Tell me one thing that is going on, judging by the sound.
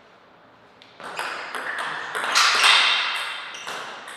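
A table tennis ball clicks back and forth on paddles and the table in a quick rally.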